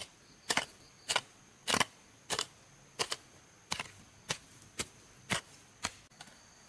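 A blade swishes through grass in quick, regular strokes.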